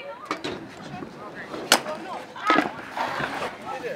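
Scooter wheels roll and clatter on concrete.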